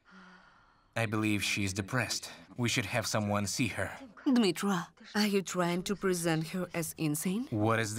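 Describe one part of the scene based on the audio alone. An older woman speaks with worry and urgency.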